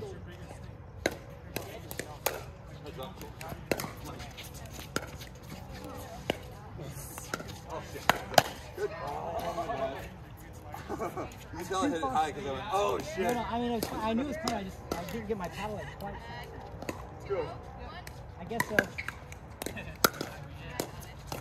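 Paddles pop sharply against a plastic ball, again and again.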